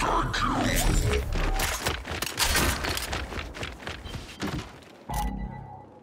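Heavy armoured footsteps thud quickly on stone.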